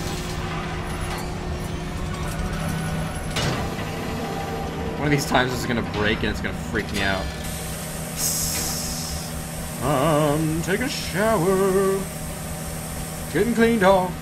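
Machinery hums low and steadily.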